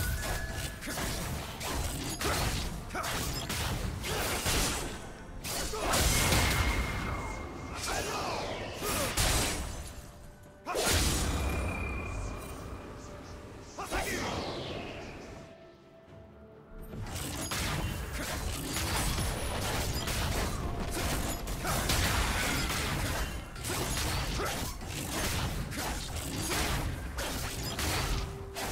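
Blows and impacts thud and clang in quick bursts.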